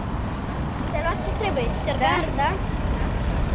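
A young girl speaks with animation outdoors.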